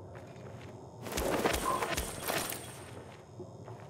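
An item rustles and clinks as it is picked up.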